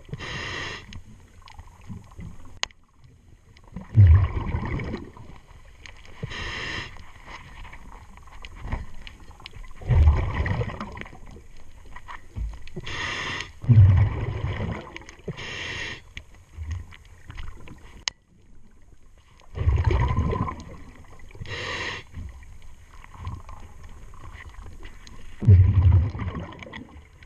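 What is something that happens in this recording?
Bubbles from a diver's breathing gush and rumble loudly underwater, every few seconds.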